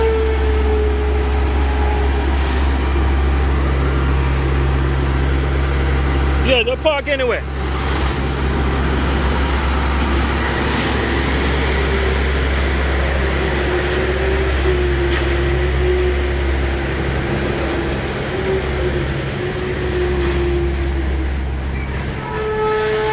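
A diesel truck engine rumbles steadily close by as the truck pulls slowly past.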